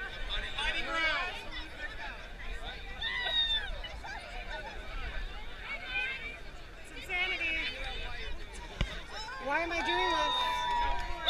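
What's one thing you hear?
A crowd of men and women chatter and cheer loudly outdoors.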